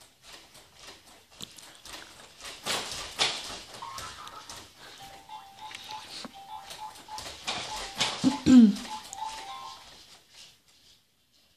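A baby rattles and clacks plastic toys.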